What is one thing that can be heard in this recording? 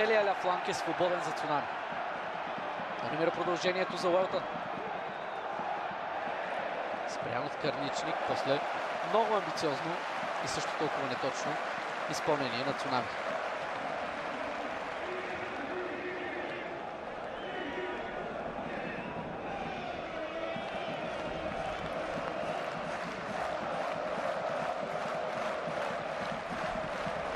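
A large stadium crowd chants and cheers loudly throughout.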